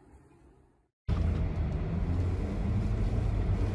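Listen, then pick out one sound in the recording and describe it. A vehicle drives through a blizzard.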